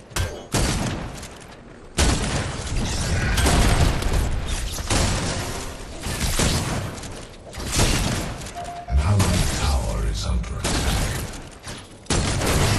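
Gunfire and energy blasts crackle and boom in rapid bursts.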